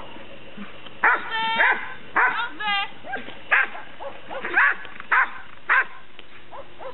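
A woman speaks encouragingly to a dog.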